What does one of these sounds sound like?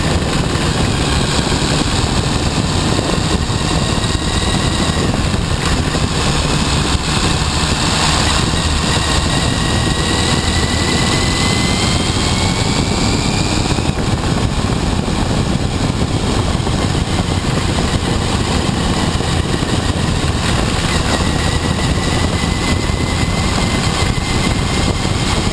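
Wind buffets loudly past the motorcycle.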